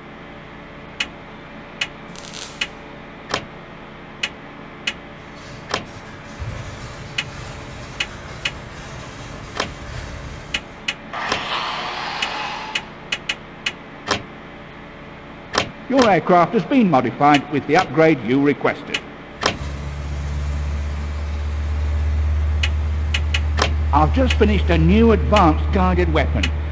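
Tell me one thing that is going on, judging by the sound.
Short electronic menu clicks tick again and again.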